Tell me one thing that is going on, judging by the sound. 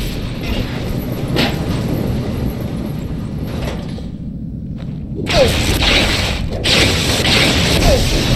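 An electric weapon crackles and buzzes with a harsh hiss.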